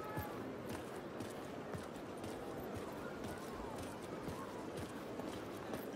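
Footsteps walk over pavement outdoors.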